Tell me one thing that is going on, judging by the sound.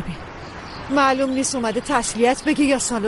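A middle-aged woman speaks sharply, close by.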